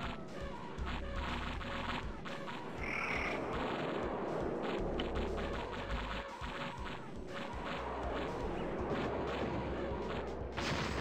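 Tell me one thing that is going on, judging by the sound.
Gunfire rattles rapidly in a game battle.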